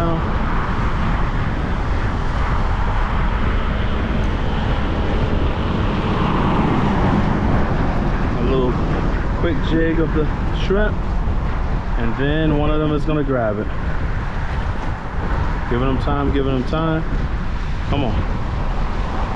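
Wind blows hard across an open outdoor space.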